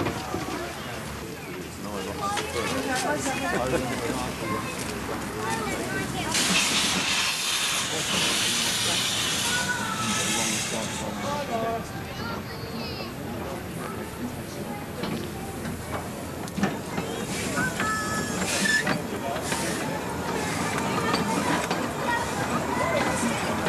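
A small steam locomotive chuffs along a track.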